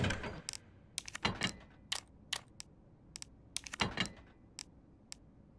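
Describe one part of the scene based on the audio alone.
Short electronic menu clicks tick as items are scrolled through.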